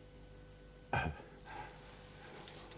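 A man laughs loudly up close.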